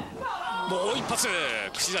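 A young woman cries out in pain nearby.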